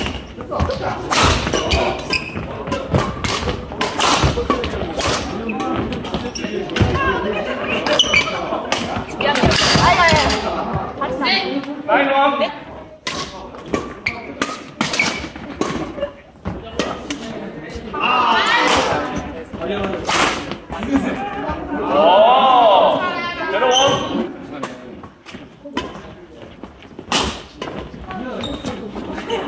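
Rackets smack a shuttlecock back and forth in a large echoing hall.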